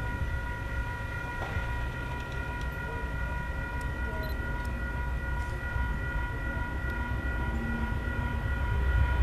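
A train horn sounds a long steady chord.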